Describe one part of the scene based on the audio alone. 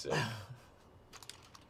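A man laughs briefly close by.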